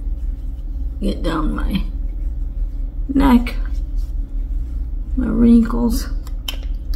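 A middle-aged woman sobs and speaks tearfully, close to the microphone.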